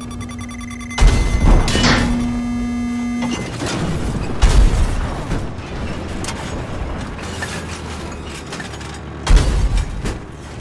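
A heavy cannon fires with loud booms.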